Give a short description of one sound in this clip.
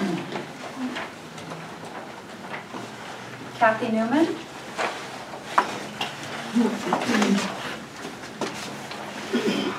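A woman speaks with animation in an echoing room.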